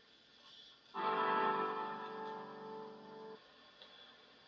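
An electric guitar chord rings out and fades.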